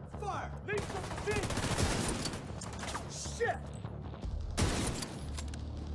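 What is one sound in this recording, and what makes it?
Rifle shots crack and echo.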